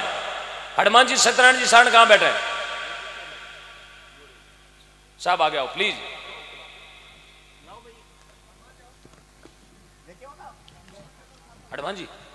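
A man sings loudly into a microphone, heard through loudspeakers with an echo.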